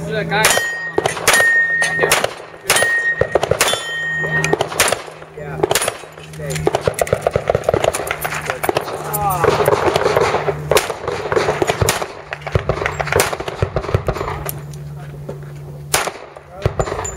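Pistol shots crack in quick bursts outdoors.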